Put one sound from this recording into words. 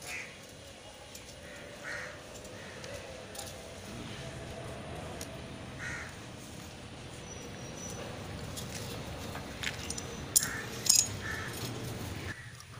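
A pipe cutter clicks and grinds as it turns around a plastic pipe.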